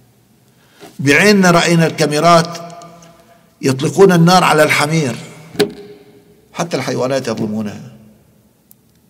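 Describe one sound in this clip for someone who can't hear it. An elderly man speaks earnestly into a close microphone, in short bursts with pauses.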